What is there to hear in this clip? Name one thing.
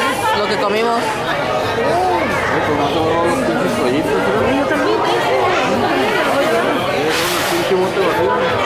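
A crowd of people chatter loudly all around, close by.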